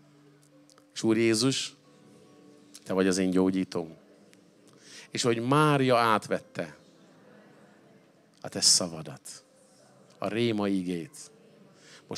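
A middle-aged man speaks slowly and with feeling into a microphone, in short phrases with pauses.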